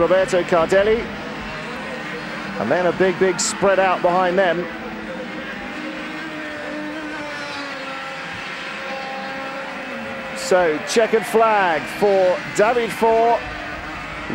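Kart engines buzz and whine as karts race past.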